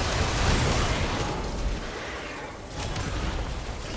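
Game spell blasts and combat effects crackle and boom.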